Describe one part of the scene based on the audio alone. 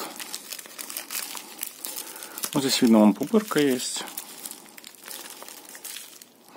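Plastic packaging crinkles and rustles between hands close by.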